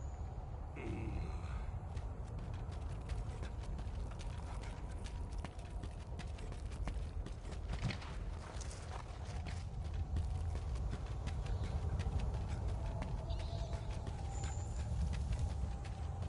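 Footsteps crunch quickly over rough ground.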